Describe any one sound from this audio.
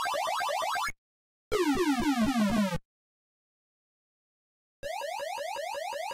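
A retro arcade game chirps with rapid, repeating electronic bleeps.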